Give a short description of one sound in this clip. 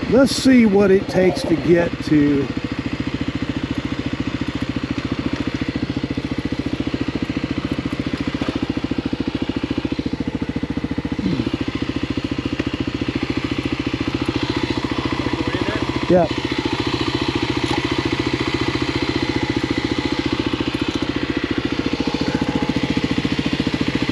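A motorcycle engine runs with a steady, rapid putter close by.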